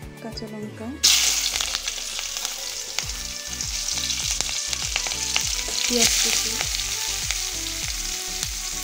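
Oil sizzles and crackles steadily in a hot pan.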